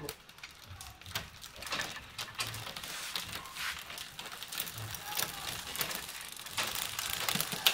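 A bicycle's rear hub ticks quickly as the wheel spins.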